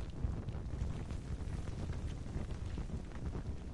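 A torch flame crackles and flutters.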